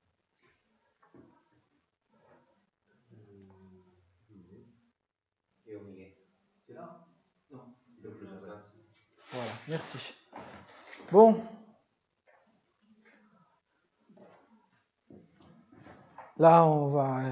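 A man speaks calmly through a microphone in an echoing room.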